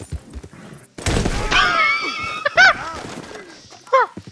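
A man cries out in pain as he falls.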